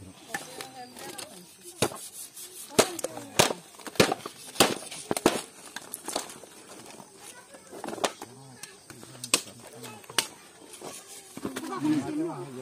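Knives chop meat against wooden boards with sharp, uneven knocks.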